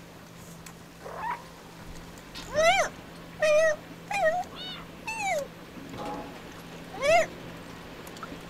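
A cat meows repeatedly in high, gliding cries.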